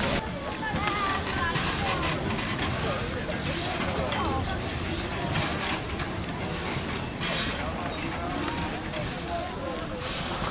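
A train rumbles slowly past on the rails.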